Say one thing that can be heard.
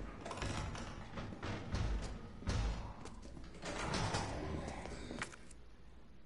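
Footsteps thud on a hard floor.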